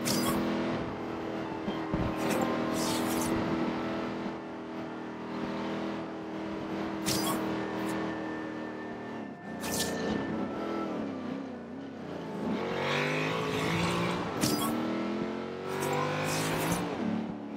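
A car engine roars at high revs, dropping and rising in pitch as the gears shift.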